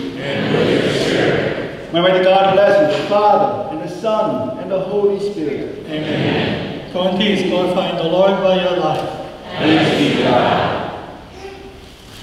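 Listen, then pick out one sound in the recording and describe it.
A man sings a prayer loudly through a microphone in a reverberant hall.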